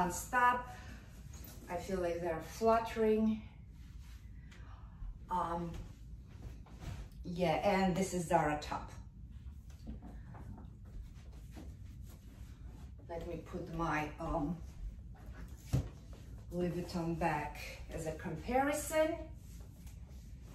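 A young woman talks calmly and with animation, close by.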